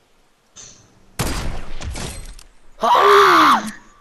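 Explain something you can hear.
A scoped rifle fires a single shot in a video game.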